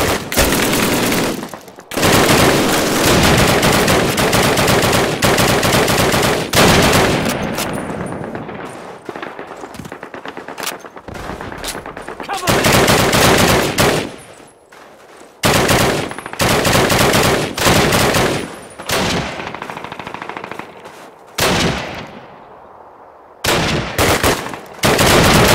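Rifle shots crack repeatedly, each followed by a long rolling echo.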